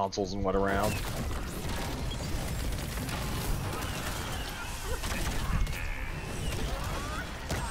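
Game spells burst and whoosh with rumbling blasts.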